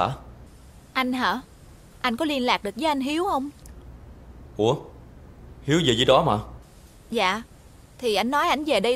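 A young woman talks on a phone with animation.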